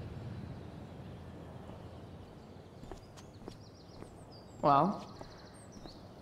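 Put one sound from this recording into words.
Footsteps tap on hard pavement.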